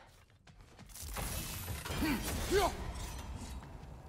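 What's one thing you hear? A deep magical rumble swells and crackles with sharp whooshes.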